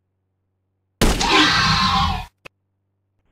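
A rifle shot booms and rumbles.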